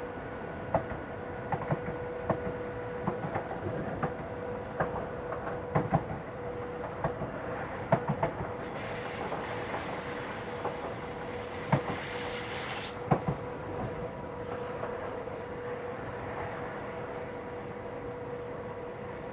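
A train rolls steadily along the tracks with a low hum.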